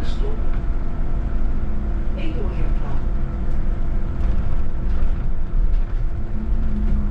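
Wind rumbles steadily and low against the microphone as a vehicle moves along a road.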